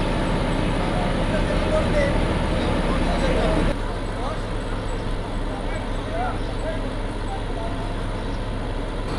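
A truck engine idles nearby with a low steady rumble.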